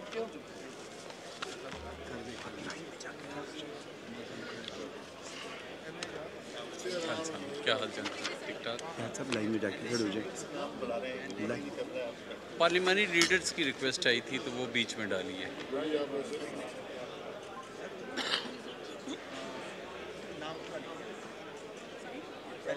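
Several men and women talk at once in a large, echoing hall.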